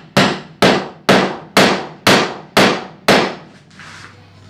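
A wooden mallet strikes wood in quick, even blows.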